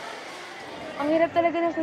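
A young girl speaks with feeling nearby.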